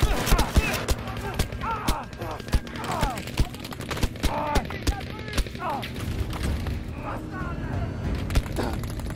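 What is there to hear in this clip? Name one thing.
Gunshots crack repeatedly in quick bursts.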